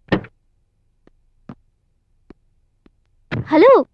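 Footsteps tap on hard ground.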